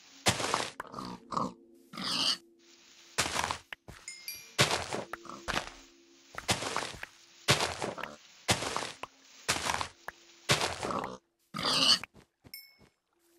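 Dirt crunches in quick repeated bursts as blocks are dug out.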